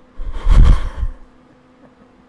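A young man cries out loudly into a microphone.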